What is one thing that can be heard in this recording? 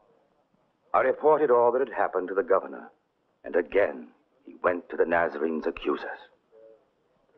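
A man speaks loudly and firmly.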